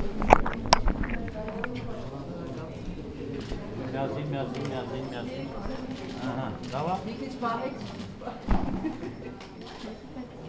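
Several adults talk quietly nearby in an echoing room.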